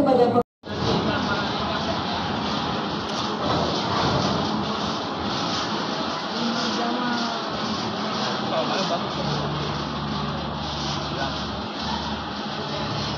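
An audience murmurs and chatters nearby.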